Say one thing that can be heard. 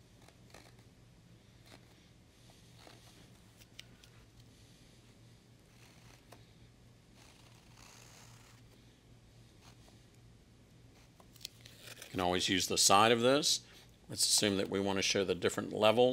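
A knife softly scrapes thick paint across a canvas.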